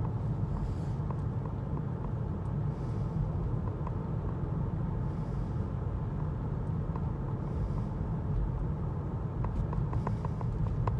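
A car engine hums steadily with a low road rumble from inside the cabin.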